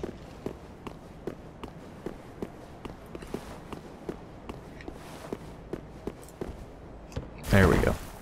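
Armoured footsteps thud steadily on stone.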